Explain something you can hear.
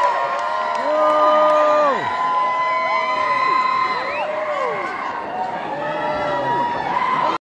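Pop music plays loudly over loudspeakers in a large hall.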